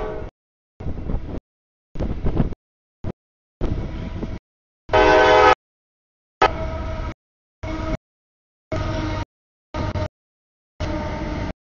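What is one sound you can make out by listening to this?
A freight train rumbles past close by.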